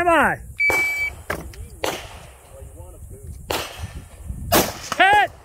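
An AR-style rifle fires single shots outdoors.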